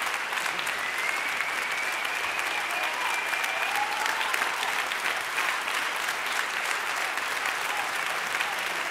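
An audience applauds loudly and steadily in a hall.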